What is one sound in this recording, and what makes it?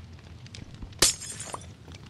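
A glass block shatters.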